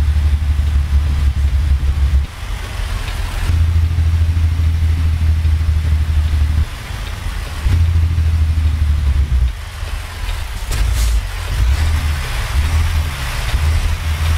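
A truck's diesel engine rumbles low and steady, dropping and rising as gears change.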